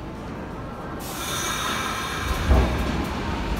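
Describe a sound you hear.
Train wheels screech on the rails.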